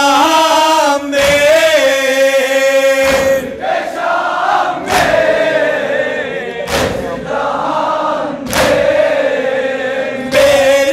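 A large crowd beats their chests in unison with heavy, regular thumps.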